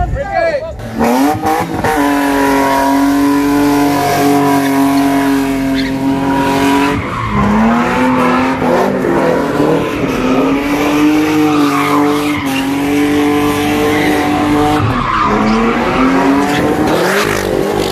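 A car engine revs hard and roars steadily.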